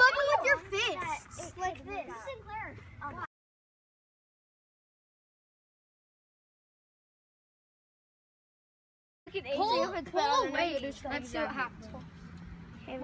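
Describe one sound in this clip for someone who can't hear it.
Young children chatter and shout excitedly close by.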